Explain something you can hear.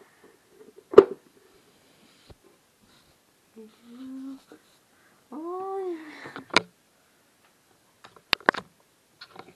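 A plastic latch clicks sharply.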